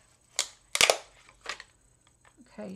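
Thin plastic crinkles and clicks as it is handled.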